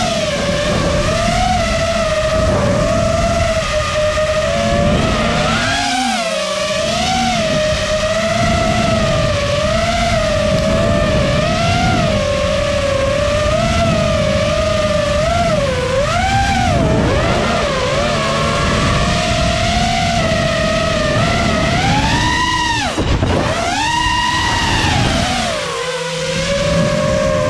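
The electric motors of a five-inch racing quadcopter whine, their pitch rising and falling with the throttle.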